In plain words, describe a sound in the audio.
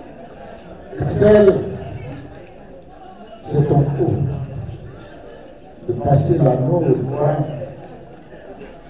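A man speaks in short, measured phrases through a microphone and loudspeaker.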